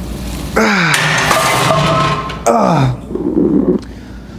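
A weight bar clanks onto its rack.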